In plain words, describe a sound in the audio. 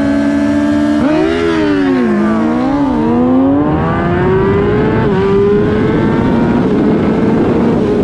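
A motorcycle accelerates at full throttle, its engine screaming up through the gears.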